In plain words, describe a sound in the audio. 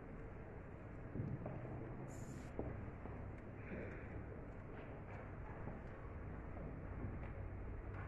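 Footsteps shuffle softly across a hard floor in a large echoing room.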